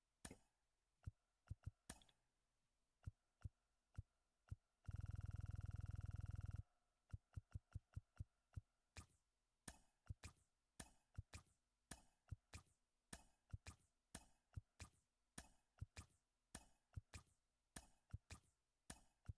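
Game menu sounds click sharply, again and again.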